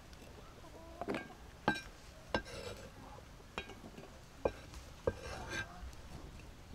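A knife chops tomato on a board.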